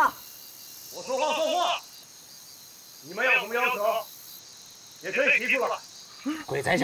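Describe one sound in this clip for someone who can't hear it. A man calls out loudly through a megaphone.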